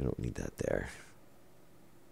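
Metal parts clank and rattle as a pipe is taken apart.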